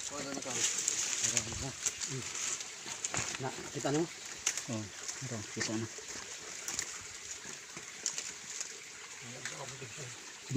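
A shallow stream splashes and gurgles over rocks close by.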